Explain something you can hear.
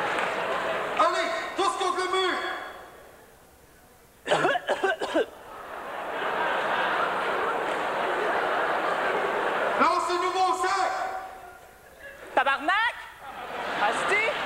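A man speaks loudly and with animation on a stage.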